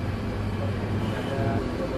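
A spoon scrapes against a ceramic bowl.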